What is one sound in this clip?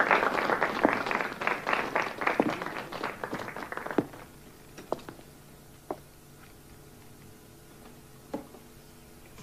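Hard shoes knock on a wooden stage floor.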